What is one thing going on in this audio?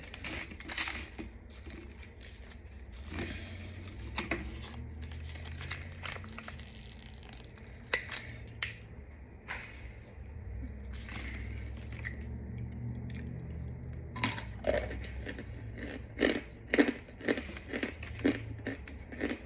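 Chalky powder packed in a plastic bottle is squeezed and cracked apart.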